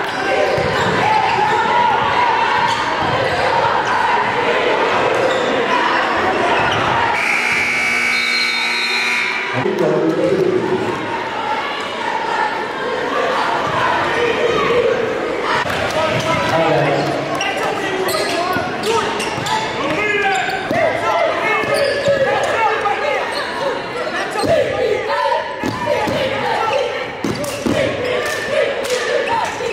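A large crowd cheers and shouts in an echoing gym.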